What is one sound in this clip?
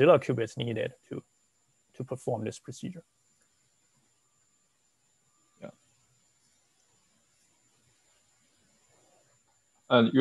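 A young man speaks calmly through a microphone over an online call, pausing now and then.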